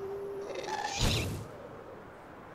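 A fireball explodes with a loud bang.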